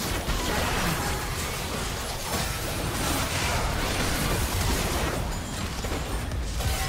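Video game spell effects crackle and burst during a fast battle.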